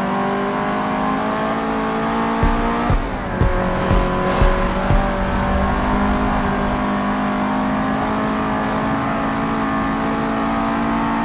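A car engine roars steadily at high revs, dropping briefly at a gear change and climbing again.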